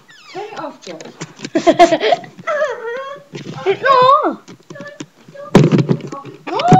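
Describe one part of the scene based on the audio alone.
A young boy talks and squeals excitedly, very close by.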